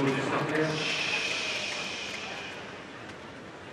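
A large crowd cheers and applauds outdoors, then fades.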